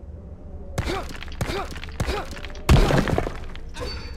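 A stone wall bursts apart with a heavy crash and falling rubble.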